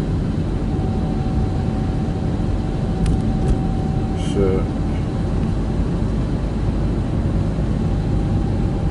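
A car drives along a motorway with a steady low road rumble from inside.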